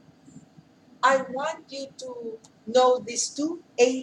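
A woman speaks clearly nearby, explaining.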